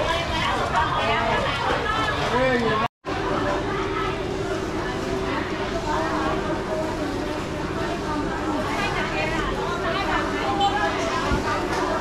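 Many men and women chatter all around, close by and further off.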